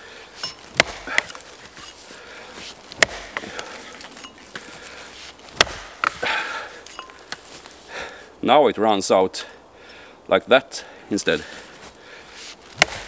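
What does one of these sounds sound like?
An axe chops into a log with sharp thuds.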